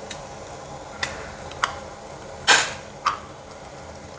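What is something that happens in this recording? Metal utensils clink and knock against a steel bowl.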